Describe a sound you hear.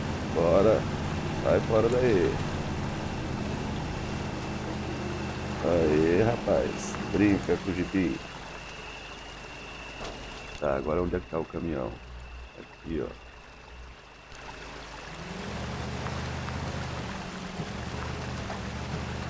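A truck engine rumbles and strains at low speed.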